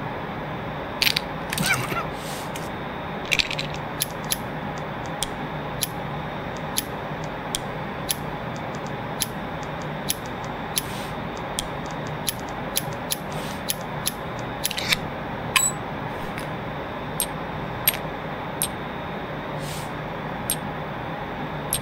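Sharp metallic clicks sound now and then.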